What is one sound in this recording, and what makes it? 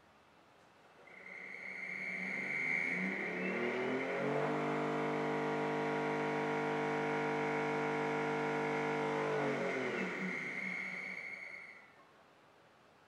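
An electric motor hums and whines, speeding up, running steadily, then slowing to a stop.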